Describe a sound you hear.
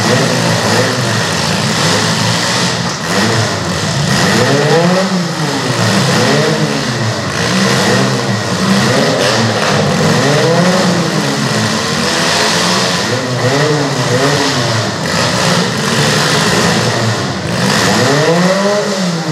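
A crowd cheers from the stands.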